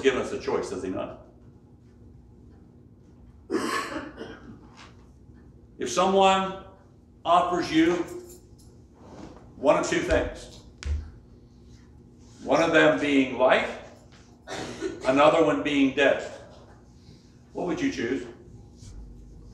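An elderly man preaches with animation through a microphone, pausing between phrases, in a softly echoing room.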